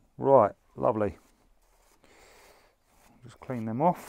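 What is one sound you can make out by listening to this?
A hand pats and brushes loose soil.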